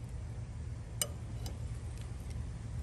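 Metal tongs click against a plate.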